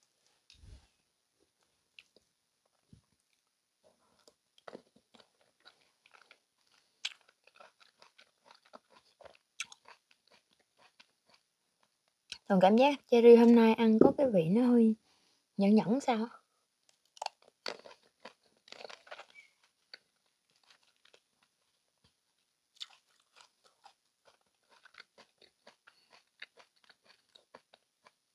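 A young woman chews fruit with soft, wet mouth sounds close to a microphone.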